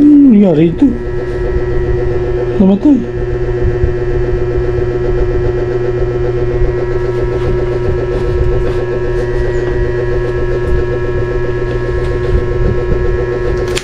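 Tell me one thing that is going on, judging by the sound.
Hands rub and tap against a cardboard box.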